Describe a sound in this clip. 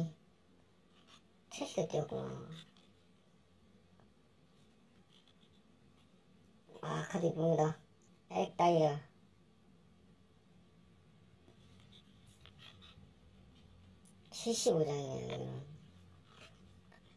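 Trading cards slide and rustle between hands close by.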